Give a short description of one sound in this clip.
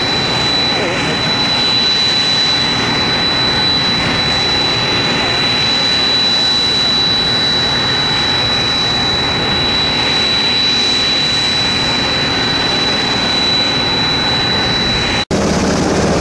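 A propeller plane drones overhead as it flies past.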